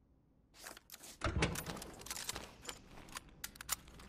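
A metal storage box lid creaks and thuds shut.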